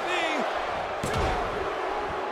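A heavy thud sounds as a body hits the mat.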